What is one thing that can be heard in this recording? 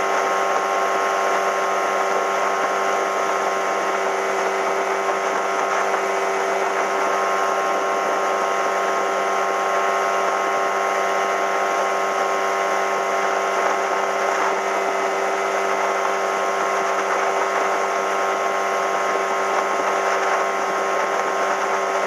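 A boat's outboard motor drones steadily at speed.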